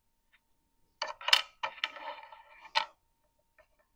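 Wooden pieces click and clatter on a tray.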